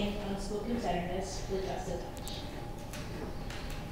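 A young woman speaks softly into a microphone in a large room.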